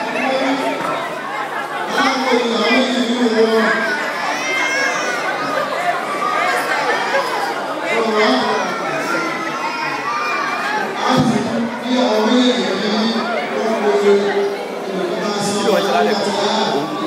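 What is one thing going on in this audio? A crowd of men and women chatter and call out all around in a busy room.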